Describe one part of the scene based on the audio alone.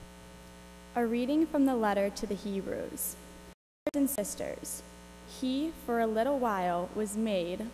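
A young woman reads aloud calmly through a microphone in a large echoing room.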